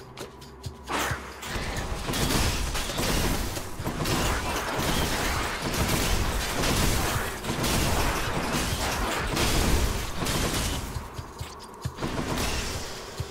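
Blasts of energy burst with a loud roar.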